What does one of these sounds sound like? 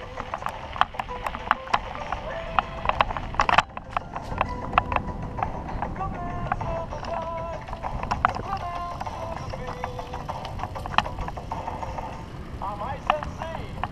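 A bicycle rattles and clicks as it rolls over paving.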